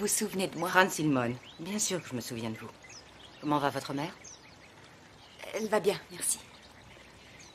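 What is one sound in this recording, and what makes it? A woman speaks firmly up close.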